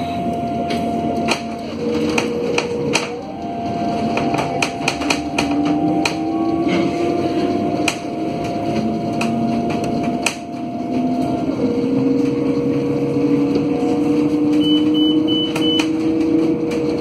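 The interior of a bus rattles and clicks over the road.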